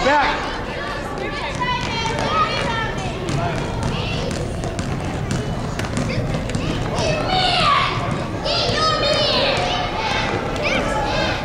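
Sneakers squeak on a hardwood floor in a large echoing hall.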